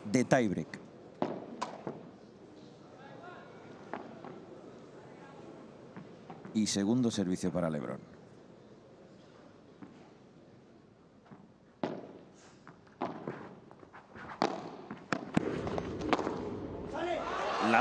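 Padel rackets hit a ball back and forth, with sharp pops echoing in a large hall.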